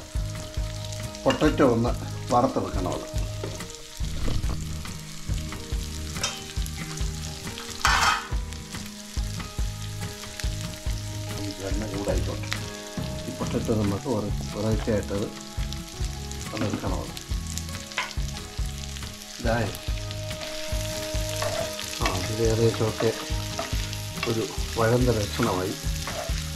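Food sizzles softly in a hot pan.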